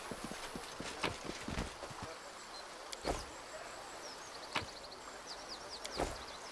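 Short interface clicks sound as item windows open and close.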